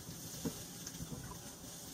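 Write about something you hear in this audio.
Liquid pours from a carton into a glass.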